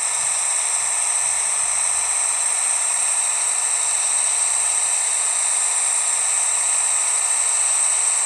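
A truck engine drones steadily.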